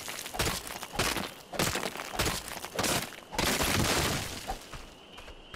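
A pickaxe strikes rock with sharp, repeated knocks.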